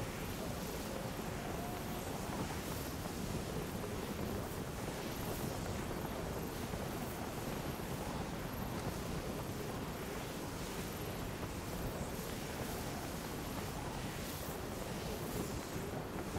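A large winged creature flaps its wings.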